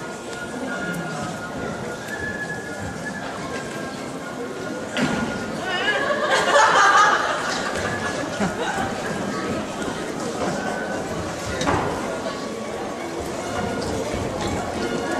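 Actors speak with animation on a stage in a large hall.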